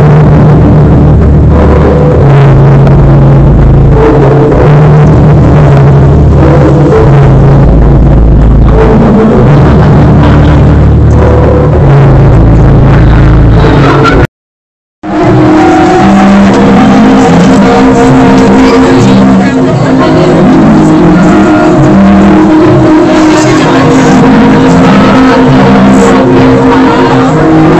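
Loud dance music with a heavy beat plays over speakers in a large hall.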